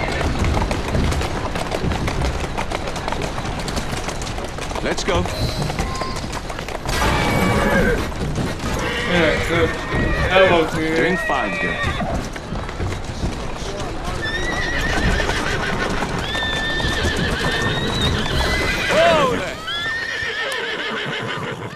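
Carriage wheels rumble and clatter over cobblestones.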